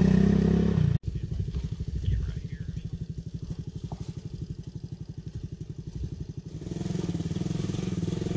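A motorcycle engine idles with a steady putter.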